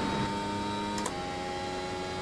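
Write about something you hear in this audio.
A racing car shifts up a gear with a sharp drop in engine pitch.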